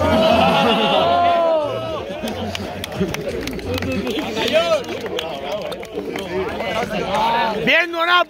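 Several young men talk loudly and laugh together outdoors.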